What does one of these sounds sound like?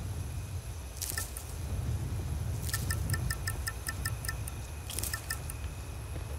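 Plants are plucked with a short rustle.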